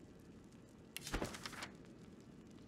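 A book opens with a soft papery rustle.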